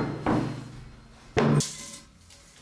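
A heavy metal tube clunks down onto a hard surface.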